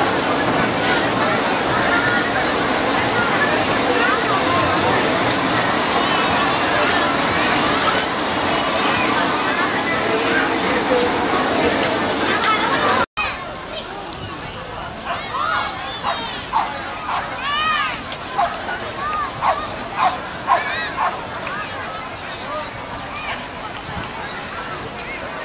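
A large crowd of people chatters outdoors.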